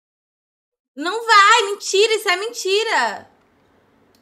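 A young woman sings in a high, shrill voice.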